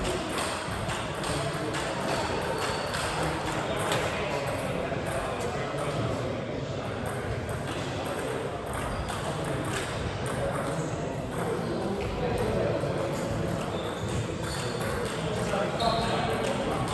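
Ping-pong balls click on tables and paddles in a large echoing hall.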